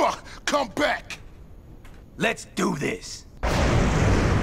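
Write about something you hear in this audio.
A man speaks gruffly and forcefully.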